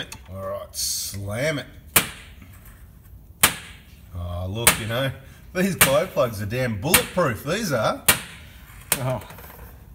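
Metal rods clink on a steel table.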